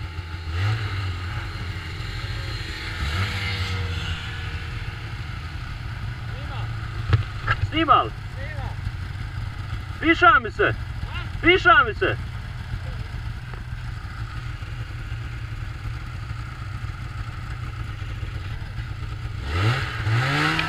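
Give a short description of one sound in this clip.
A snowmobile engine idles with a low, steady rumble.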